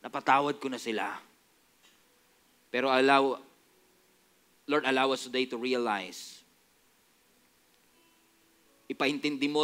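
A young man speaks earnestly into a headset microphone, pausing between phrases.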